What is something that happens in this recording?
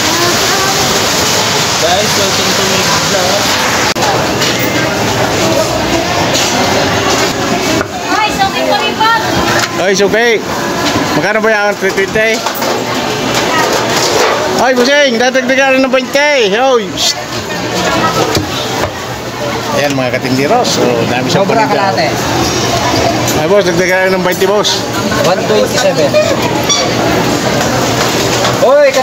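A crowd chatters steadily in a busy, noisy hall.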